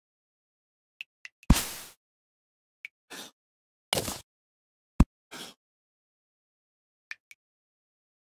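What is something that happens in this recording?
A pickaxe strikes rock, breaking blocks with short crunching bursts.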